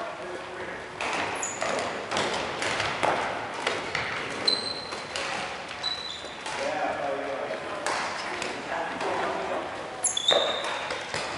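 Balls thud on a wooden floor.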